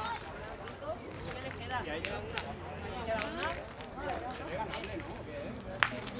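Boys chatter and call out nearby outdoors.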